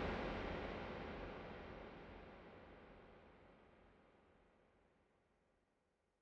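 Tribal guarachero dance music from a DJ mix plays through studio monitors and fades out.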